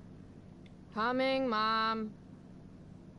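A young woman calls out loudly in a sing-song voice.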